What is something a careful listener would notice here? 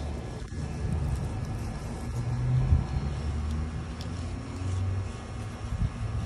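Gloved hands rustle through leafy plants.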